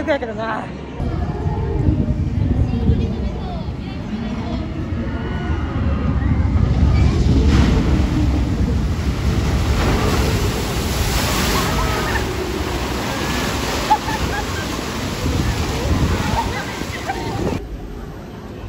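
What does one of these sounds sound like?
Water rushes and churns outdoors.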